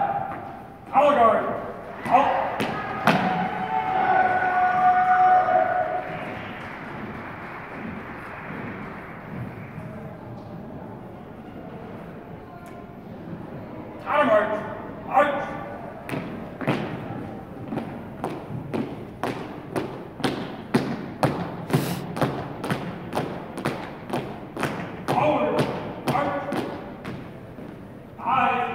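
A young man shouts drill commands in an echoing hall.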